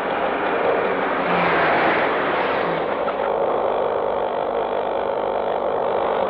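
A van engine rumbles.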